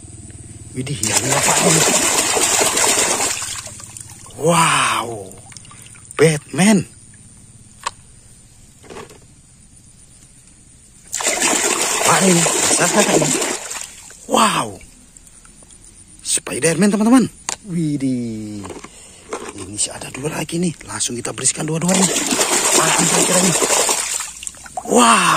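A hand splashes hard and fast in shallow water.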